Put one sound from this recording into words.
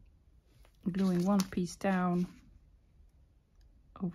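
Paper rustles as it is folded and handled.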